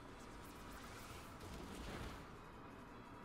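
A burst of flame whooshes up.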